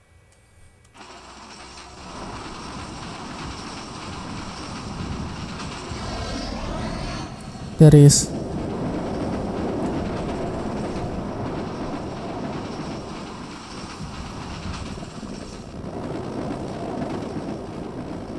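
A train roars and rumbles past at speed.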